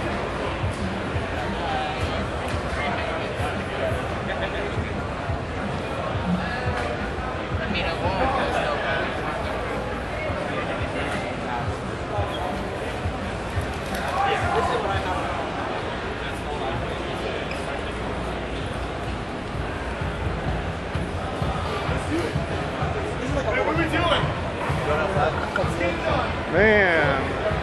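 A crowd of young people chatters throughout a large echoing hall.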